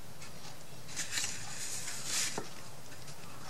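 A tool scrapes across paper.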